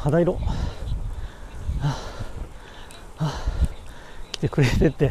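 Wind rumbles and buffets against the microphone while moving along a road outdoors.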